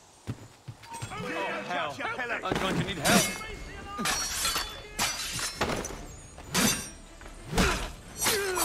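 Men shout in a fight.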